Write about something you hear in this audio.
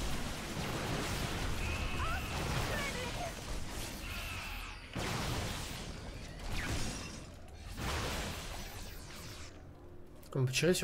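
Gunfire and explosions crackle from a video game battle.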